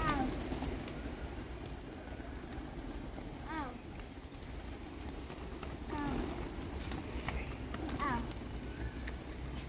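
Pigeon wings flap and flutter.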